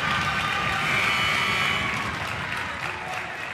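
A crowd cheers and applauds in a large echoing gym.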